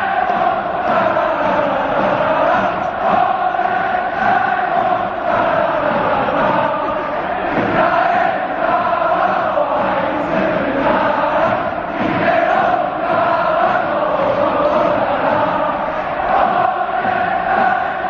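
A large stadium crowd chants and sings loudly in unison.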